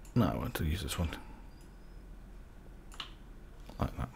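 A stone block cracks and breaks apart.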